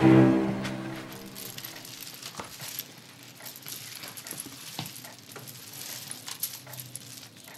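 Strings of beads rattle and clatter.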